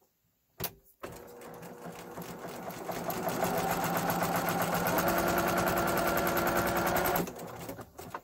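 A sewing machine whirs quickly as it stitches, speeding up and then stopping.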